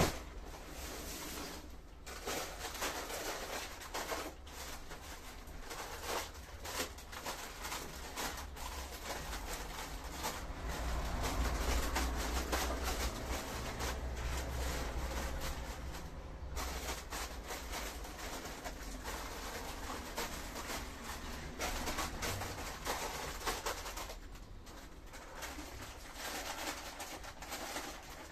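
Plastic snack bags crinkle and rustle up close.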